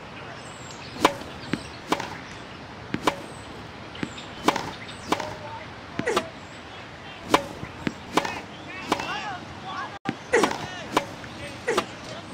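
Rackets strike a tennis ball back and forth in quick, sharp pops.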